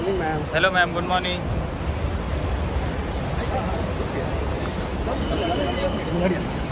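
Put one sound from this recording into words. Men call out and talk nearby outdoors.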